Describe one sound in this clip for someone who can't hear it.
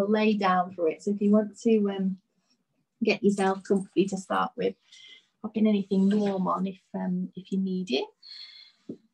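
A woman speaks calmly and clearly into a nearby microphone, as if heard over an online call.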